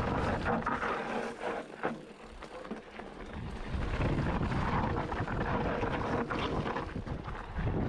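Wind rumbles past outdoors.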